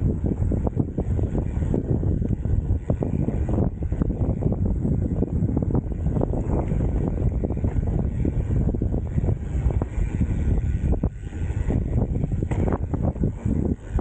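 A mountain bike rattles over bumps.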